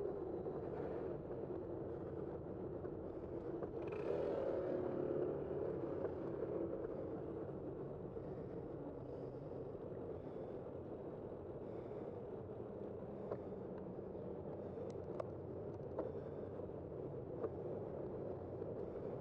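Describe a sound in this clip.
Bicycle tyres hum on smooth pavement.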